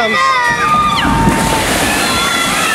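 Riders scream with excitement nearby.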